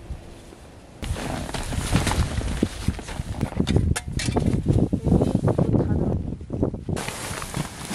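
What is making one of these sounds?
Tent fabric rustles as a person climbs inside.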